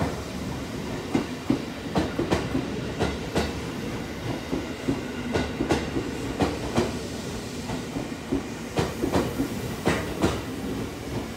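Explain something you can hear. A train rolls past with a steady rumble.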